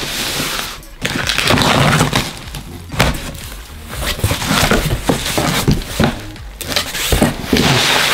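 Cardboard scrapes and rustles as a box is opened.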